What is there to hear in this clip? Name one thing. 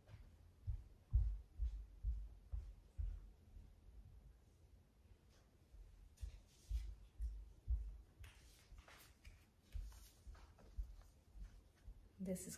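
Footsteps thud slowly.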